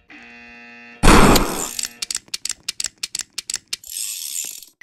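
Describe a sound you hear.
Gunshots ring out in a quick, rapid burst.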